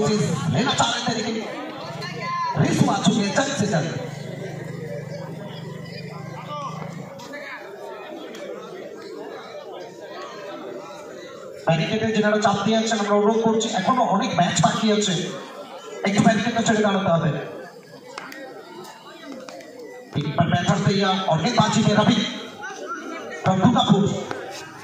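A large outdoor crowd murmurs and cheers.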